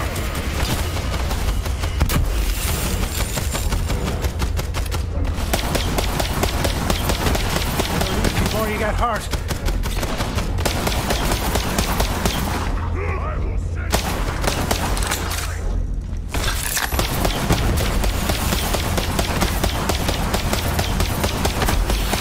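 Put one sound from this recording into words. Rapid gunfire bursts from a video game.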